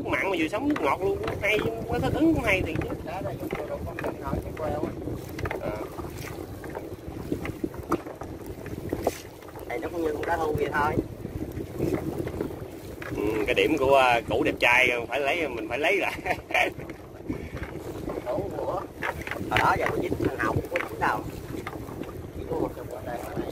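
Waves slap against the hull of a small boat.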